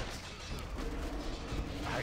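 A fiery spell bursts with a loud whoosh.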